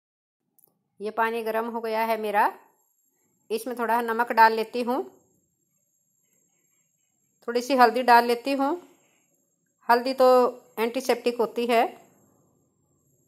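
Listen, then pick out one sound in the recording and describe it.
A woman speaks calmly, close to a microphone, in short phrases with pauses.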